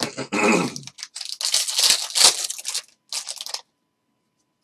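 A foil pack crinkles as it is torn open.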